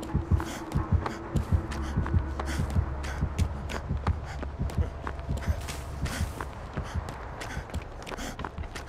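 Footsteps crunch quickly on snowy ground.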